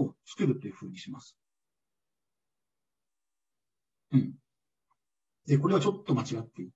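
A man speaks calmly through a microphone, as if lecturing in an online call.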